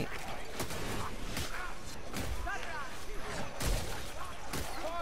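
Blades hack into creatures with sharp wet thuds.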